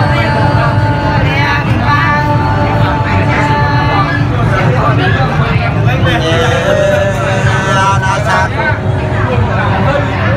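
A woman sings close by.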